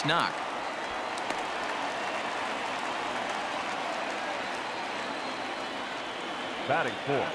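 A large crowd murmurs steadily in a stadium.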